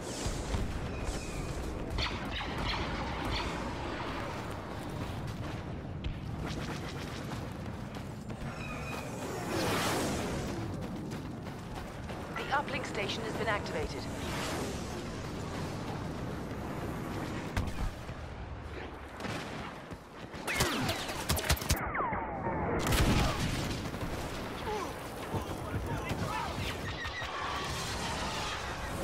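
Laser blasters fire in sharp bursts.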